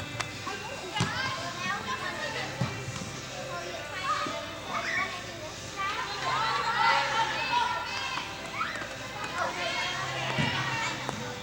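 A soccer ball is kicked with sharp thuds.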